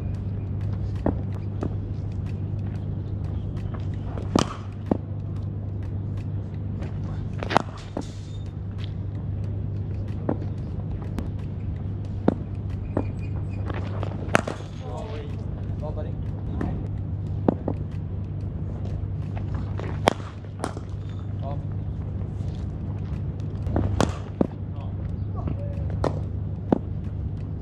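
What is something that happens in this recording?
A cricket bat cracks against a ball again and again, outdoors.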